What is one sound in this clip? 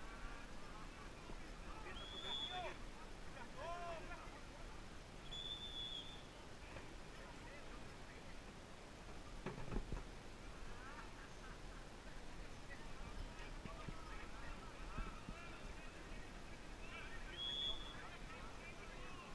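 Young men shout to each other in the distance, outdoors.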